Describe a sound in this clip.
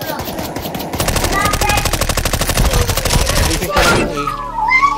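A submachine gun fires in a rapid burst.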